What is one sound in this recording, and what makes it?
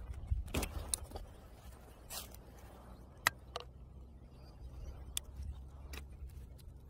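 Plastic clicks and crackles as a ring is handled.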